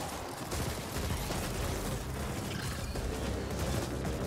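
Electric beams crackle and zap.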